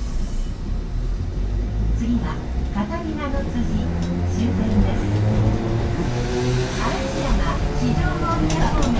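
An electric train motor whines and drops in pitch as the train slows.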